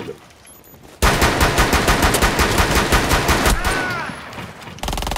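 Rapid gunfire rings out in bursts.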